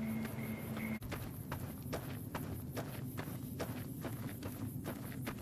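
Footsteps crunch on dry gravel at a steady walking pace.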